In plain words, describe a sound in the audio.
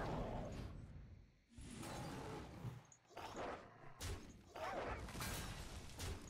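Game sound effects chime and thud as cards are played.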